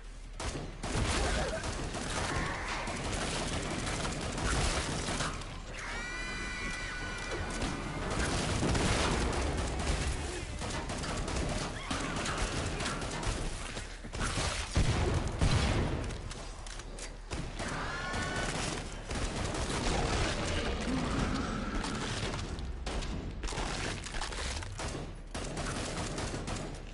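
Creatures growl and shriek.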